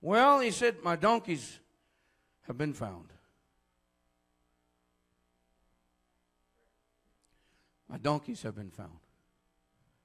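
A man speaks forcefully in short bursts through a microphone and loudspeakers.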